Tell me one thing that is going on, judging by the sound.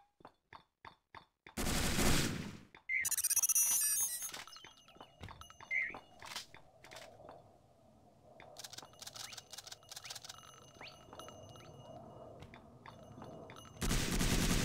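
Footsteps clatter quickly on roof tiles.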